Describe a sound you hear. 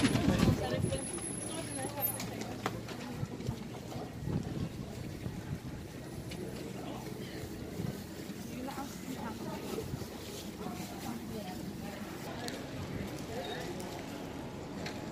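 Men and women chatter faintly as they walk past outdoors.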